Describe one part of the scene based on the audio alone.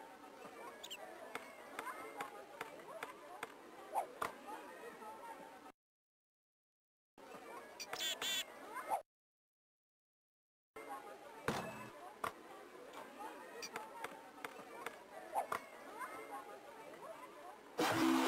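A basketball bounces on a court in a video game.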